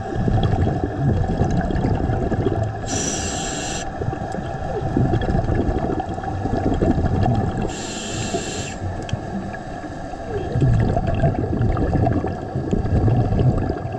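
Water rumbles and sloshes in a low, muffled way, as if heard underwater.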